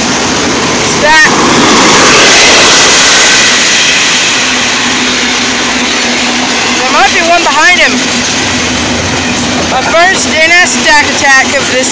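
Train wheels squeal against the rails now and then.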